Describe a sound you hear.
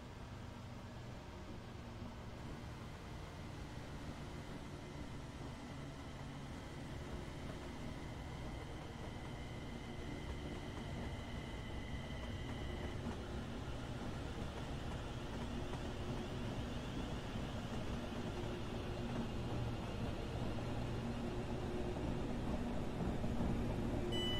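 An electric train approaches with a low, steady hum that grows louder.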